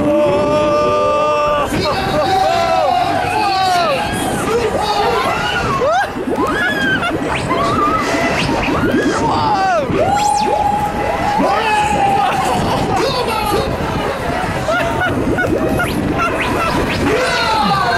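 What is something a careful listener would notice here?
A fairground ride whirls and rumbles.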